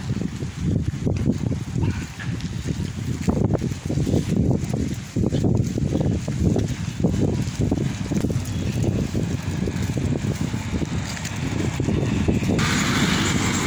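Footsteps shuffle on pavement.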